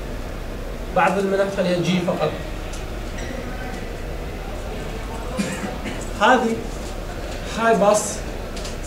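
A man lectures nearby, speaking in short bursts.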